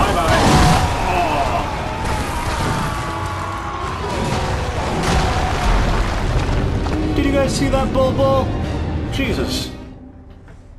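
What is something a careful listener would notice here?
Heavy blades clash and slash in a fierce fight.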